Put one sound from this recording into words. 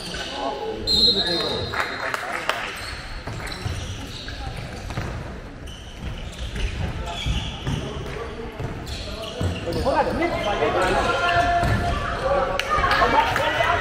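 Sports shoes squeak on a hard indoor court in a large echoing hall.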